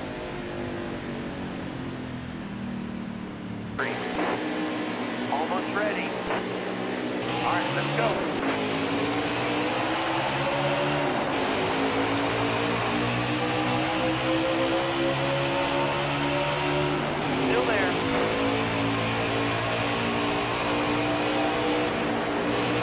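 Race car engines roar loudly and rise in pitch as the cars speed up.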